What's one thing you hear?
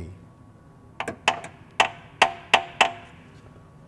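Metal tools click and tap against a car's underside.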